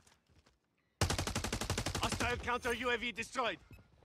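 A rifle fires in a fast automatic burst.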